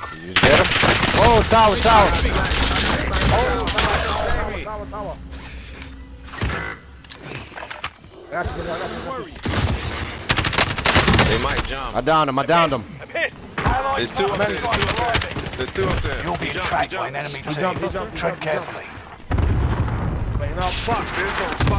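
Rapid gunfire cracks in short bursts.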